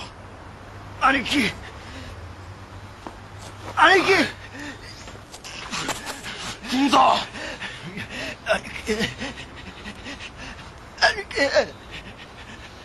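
A young woman speaks weakly and breathlessly.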